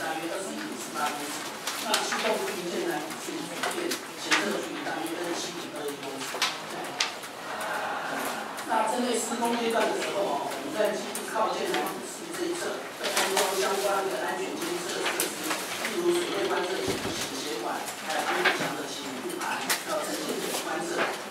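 A man speaks steadily through a microphone and loudspeakers.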